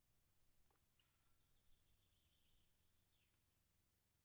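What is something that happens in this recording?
A fishing reel clicks as it winds in line.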